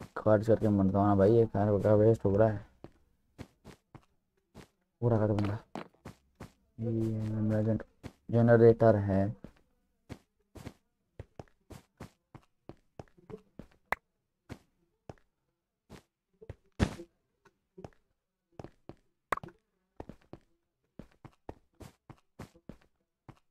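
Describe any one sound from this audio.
Footsteps tap quickly across hard blocks.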